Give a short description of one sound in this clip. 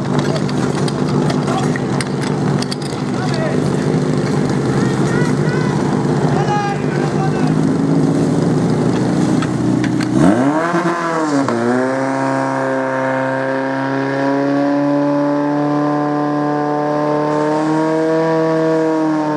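A pump engine roars loudly and revs up.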